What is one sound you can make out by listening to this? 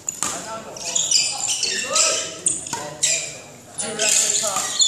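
A badminton racket strikes a shuttlecock.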